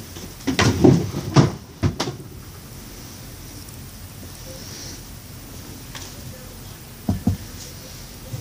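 Fabric rustles and flaps as clothes are handled and shaken out close by.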